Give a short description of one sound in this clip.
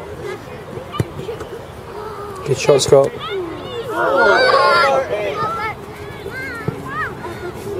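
A football is kicked with a dull thud.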